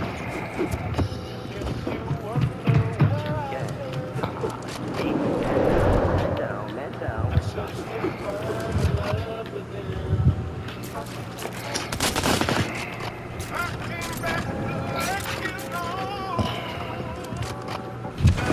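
Wooden and metal building pieces clatter into place in quick bursts.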